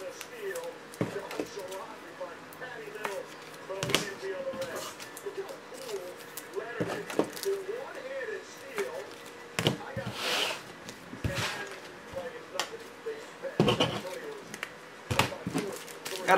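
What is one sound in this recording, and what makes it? Plastic card cases knock and click against a hard surface.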